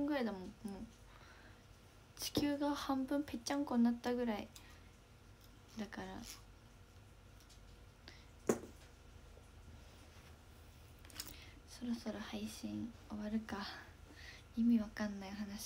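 A young woman speaks softly and casually, close to a microphone, with pauses.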